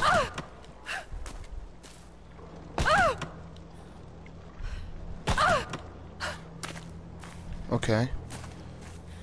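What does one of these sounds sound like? A young woman grunts with effort.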